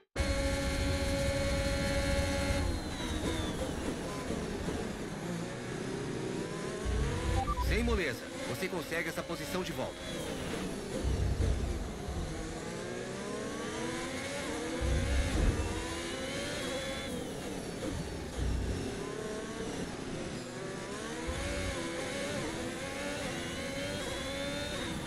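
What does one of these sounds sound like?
A racing car engine whines loudly, rising and falling in pitch as the gears change.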